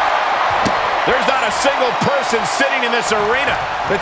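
A wrestler's kick lands with a thud.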